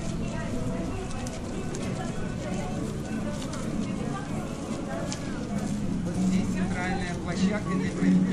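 Footsteps of a crowd shuffle on pavement.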